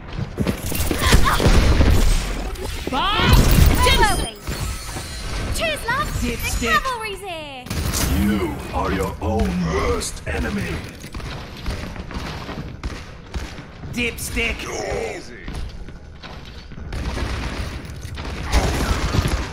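Video game shots and effects crackle and whoosh.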